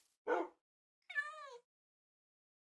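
A llama bleats nearby.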